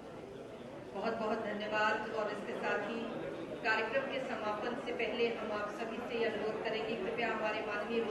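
A woman speaks into a microphone, heard over loudspeakers in a large hall.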